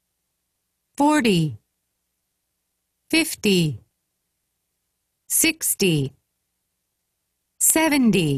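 A woman reads out single words clearly through a microphone, pausing between each.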